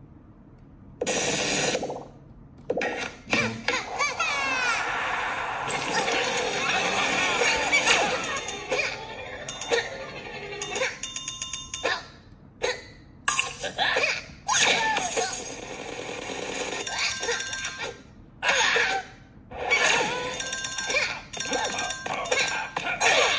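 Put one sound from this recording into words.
Upbeat game music and chiming sound effects play from a small tablet speaker.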